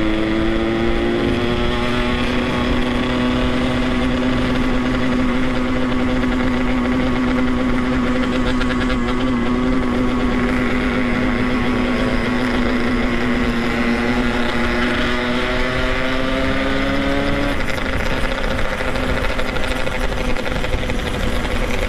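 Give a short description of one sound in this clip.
A motorcycle engine drones steadily at a constant pace, then eases off near the end.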